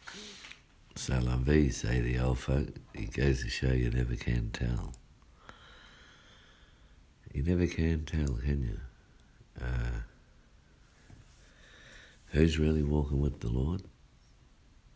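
A man speaks calmly up close, in short bursts with pauses.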